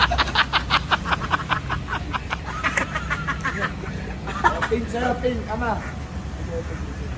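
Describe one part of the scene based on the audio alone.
A young man laughs nearby.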